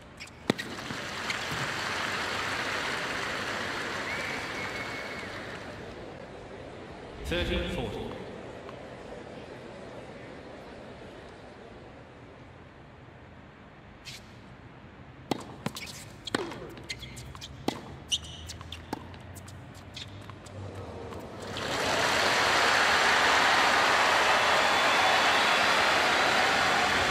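A large crowd claps and cheers.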